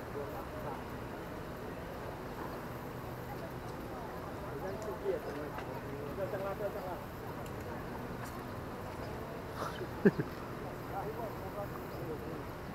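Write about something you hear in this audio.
A fishing reel clicks softly as hands handle it.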